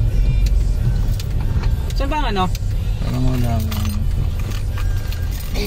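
A car engine hums steadily with low road rumble from inside the car.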